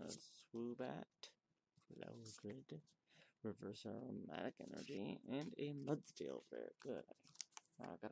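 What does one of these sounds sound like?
Playing cards are flicked and slid against each other.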